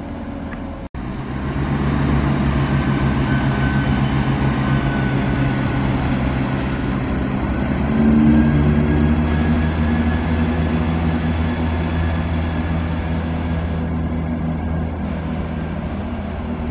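Train wheels clatter along the rails.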